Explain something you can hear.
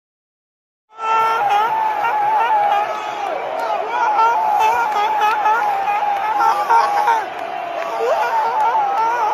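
A young man shouts with excitement close by.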